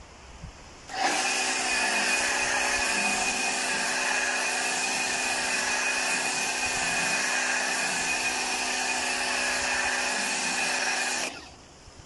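A pressure washer sprays foam with a steady hissing roar.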